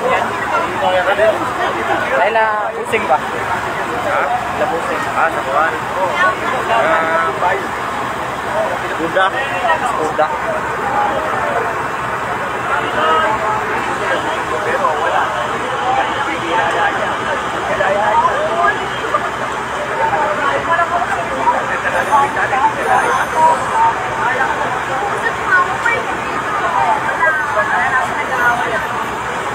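A crowd of men shouts and talks loudly outdoors.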